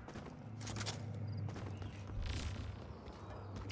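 A magical ability bursts with a bright whoosh.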